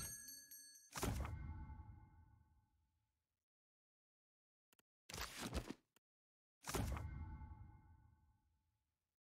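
Book pages rustle and flip.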